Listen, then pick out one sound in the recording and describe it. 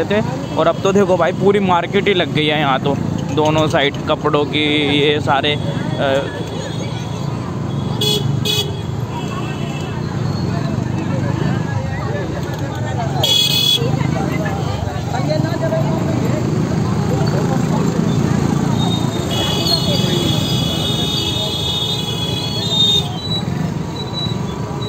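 A lively crowd chatters outdoors all around.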